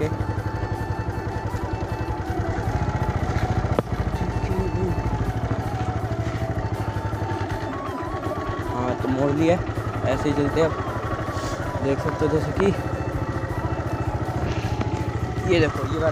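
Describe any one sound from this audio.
A motorcycle engine putters steadily close by.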